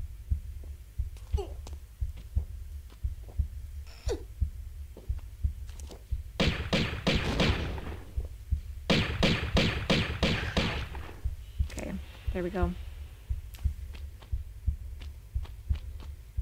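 Footsteps thud steadily on a stone floor.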